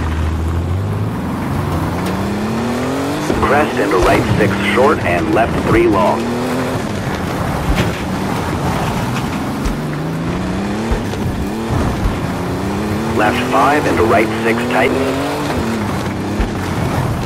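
A rally car engine revs high and shifts through gears.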